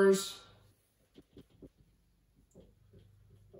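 A marker squeaks against a whiteboard in short strokes.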